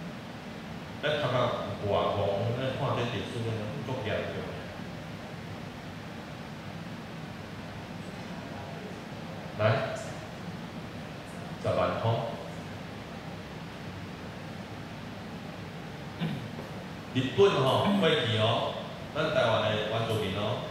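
A man speaks with pauses through a microphone and loudspeakers in a large room.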